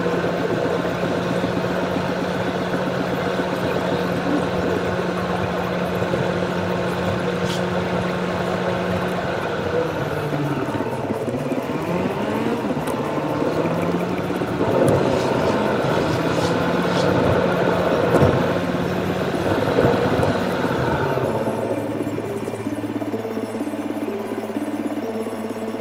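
A car engine hums from inside the car, its pitch rising and falling as it speeds up and slows down.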